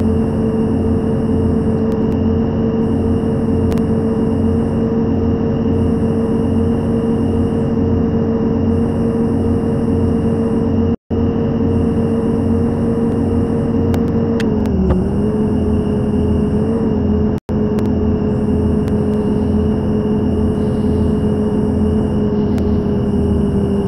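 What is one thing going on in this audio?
A bus engine hums steadily at speed, dipping briefly in pitch.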